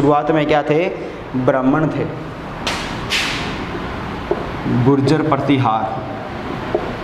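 A young man speaks calmly, as if explaining, close by.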